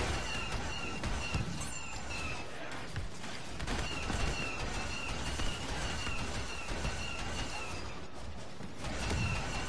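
Rapid electronic blaster shots fire in bursts.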